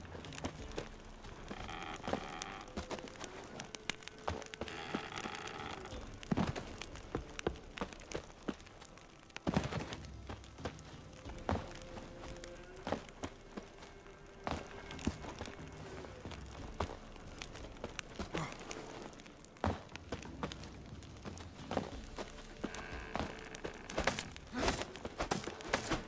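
Footsteps crunch on straw.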